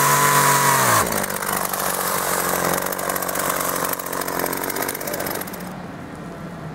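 A chainsaw idles with a low rumble.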